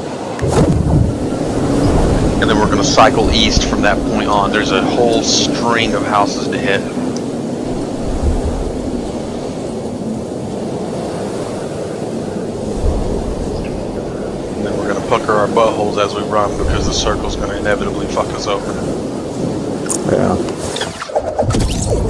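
Wind rushes steadily during a fall through the air.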